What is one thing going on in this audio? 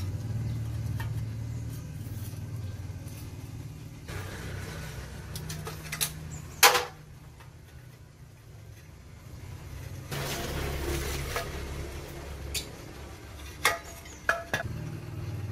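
Metal tools clink and clatter against an engine.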